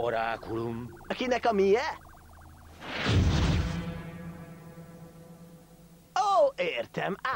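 A young cartoon character speaks with surprise in an animated voice.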